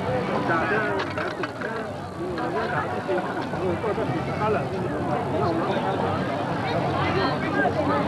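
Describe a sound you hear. A large crowd of people chatters outdoors.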